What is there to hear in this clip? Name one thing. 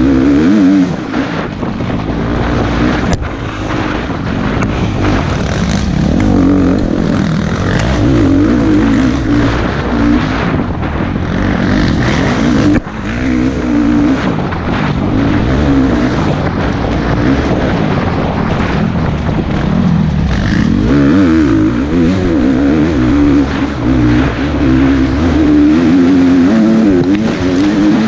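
A dirt bike engine roars close by, revving up and down.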